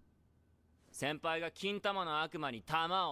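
A young man shouts in panic.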